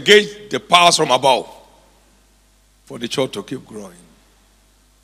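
A middle-aged man speaks emphatically into a microphone.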